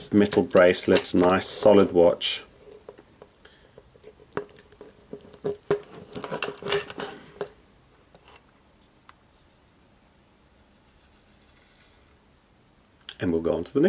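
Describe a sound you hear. Fingers tap and scrape against a metal watch.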